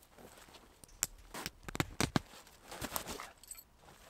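Tent fabric rustles.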